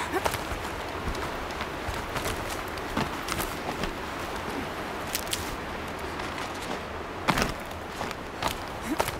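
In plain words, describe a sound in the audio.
Hands scrape and grip rough rock while climbing.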